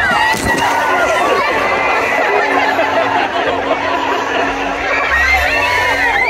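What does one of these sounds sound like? Water splashes heavily as a whale crashes into a pool.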